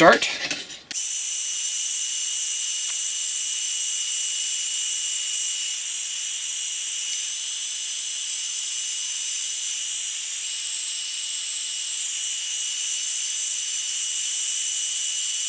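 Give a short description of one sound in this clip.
A heat gun blows with a steady, high whooshing hiss.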